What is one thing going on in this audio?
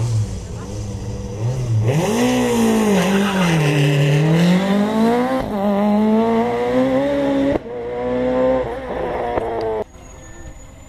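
A racing car engine roars and revs hard as the car speeds past.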